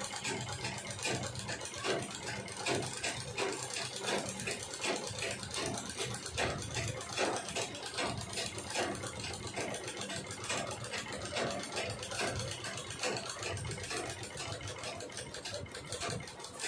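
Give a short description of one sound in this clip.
A treadle sewing machine clatters, stitching through cloth.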